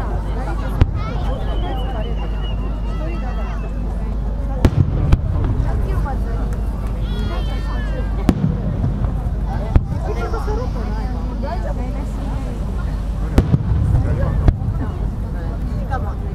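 A firework rocket whistles as it shoots upward.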